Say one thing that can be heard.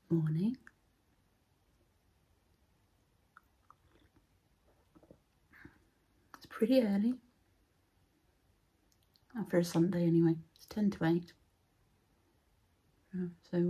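A woman speaks calmly and close to the microphone, in short bursts with pauses.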